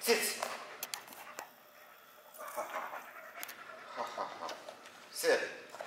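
An elderly man talks to a dog in a friendly, encouraging voice nearby.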